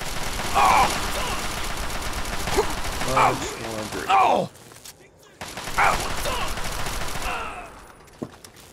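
An automatic rifle fires rapid bursts of gunfire.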